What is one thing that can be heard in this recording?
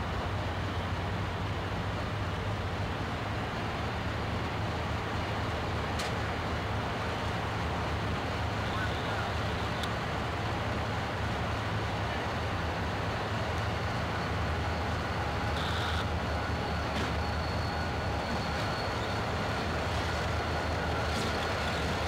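A diesel locomotive engine idles with a deep, steady rumble.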